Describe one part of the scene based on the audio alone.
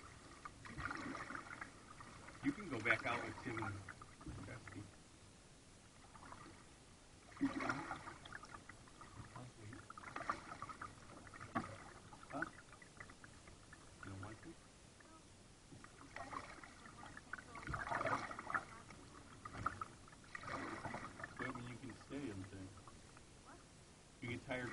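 Water laps softly against the hull of a kayak.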